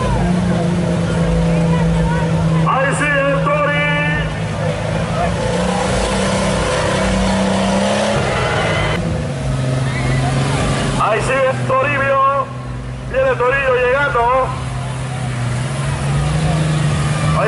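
A truck engine roars and revs loudly.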